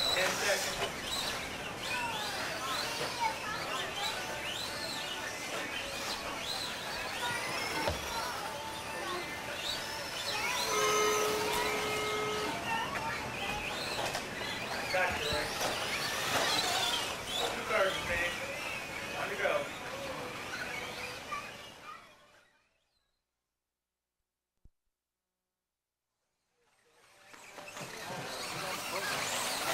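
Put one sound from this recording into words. Remote-control car tyres crunch over loose dirt.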